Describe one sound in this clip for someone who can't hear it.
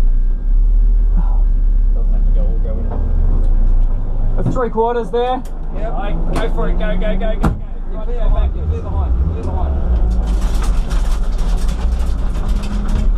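A car engine idles with a low, steady rumble close by.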